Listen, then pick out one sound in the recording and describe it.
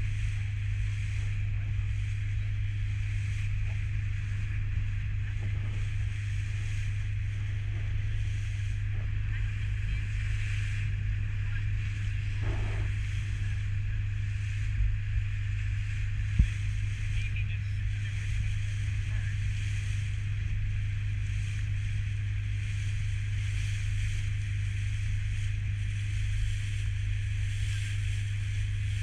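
A boat engine hums steadily throughout.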